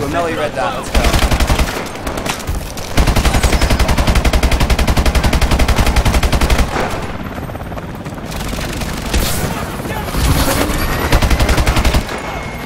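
A rifle fires rapid bursts.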